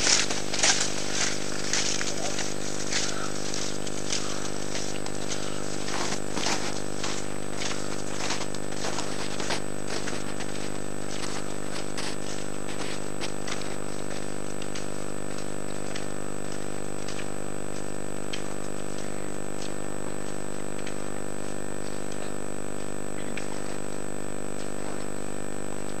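Cross-country skis crunch on snow as a skier climbs.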